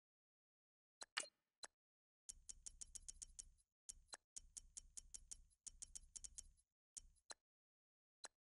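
Short electronic menu clicks tick in quick runs.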